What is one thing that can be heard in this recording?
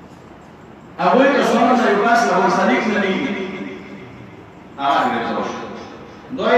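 A man speaks forcefully into a microphone, heard through loudspeakers.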